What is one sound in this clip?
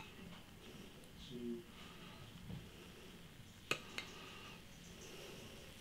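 Beer pours and fizzes into a glass.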